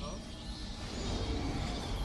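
Wings flap in a swirling rush of air.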